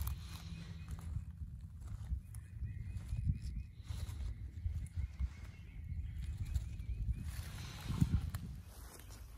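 Leaves rustle as a hand handles a plant.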